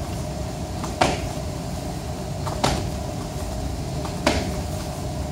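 Sharp thuds of body blows land at intervals.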